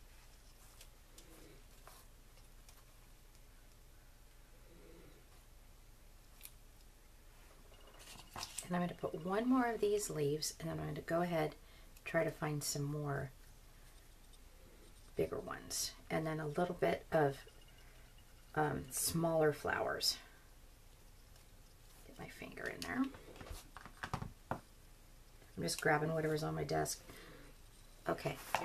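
Paper rustles softly as it is handled.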